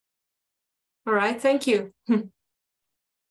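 A young woman speaks briefly over an online call.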